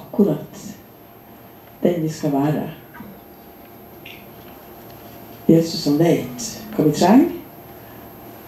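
An elderly woman speaks into a microphone in short bursts with pauses, heard through loudspeakers.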